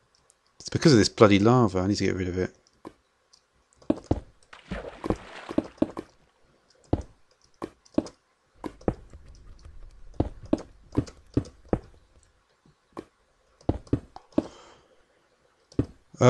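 Lava pops and crackles.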